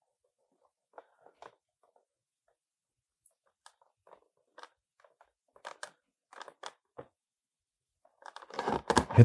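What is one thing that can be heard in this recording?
Cardboard rustles and taps as hands handle it.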